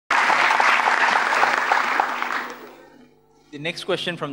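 A large crowd applauds in a big hall, then the applause fades.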